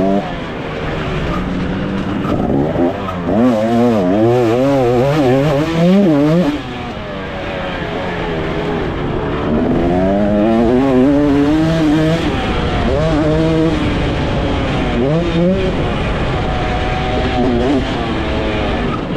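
A dirt bike engine revs hard, rising and falling in pitch.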